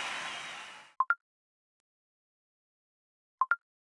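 Short electronic menu blips sound in quick pairs.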